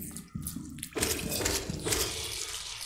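A sharp burst of a game's combat effect rings out.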